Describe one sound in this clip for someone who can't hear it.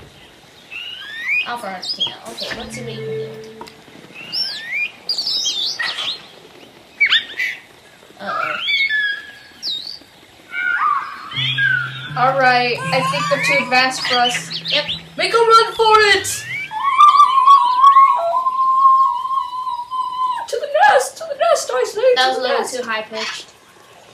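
Small creatures chirp, squawk and warble in quick bursts.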